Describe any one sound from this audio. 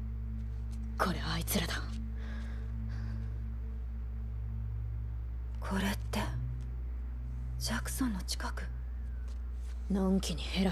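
A young woman speaks quietly and calmly.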